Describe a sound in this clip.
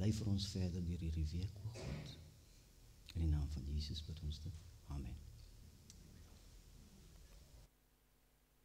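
A middle-aged man speaks calmly into a microphone in an echoing room.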